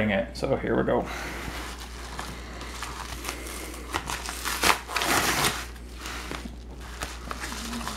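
A padded paper envelope crinkles and rustles as it is handled.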